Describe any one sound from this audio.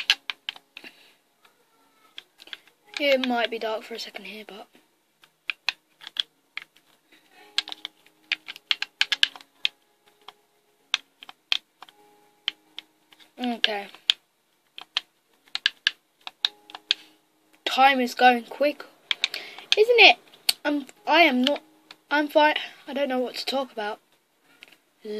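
A video game plays through a television speaker, with short clicks and knocks of blocks being broken.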